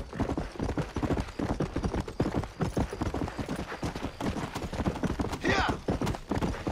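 Horse hooves thud rapidly on dirt at a gallop.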